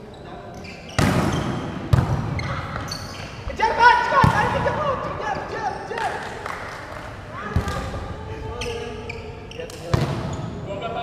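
A volleyball is struck with sharp slaps that echo around a large hall.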